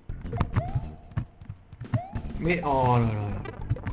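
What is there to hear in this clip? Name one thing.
A video game plays a stomp sound as an enemy is squashed.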